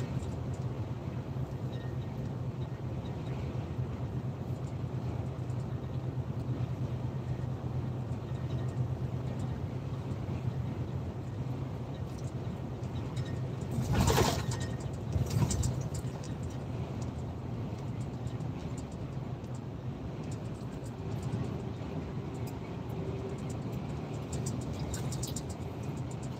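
Tyres roll on the motorway with a steady road noise.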